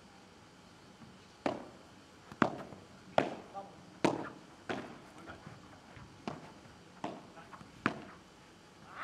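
A ball bounces sharply on a hard court several times.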